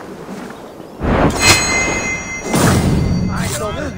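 A blade stabs into a body with a heavy thud.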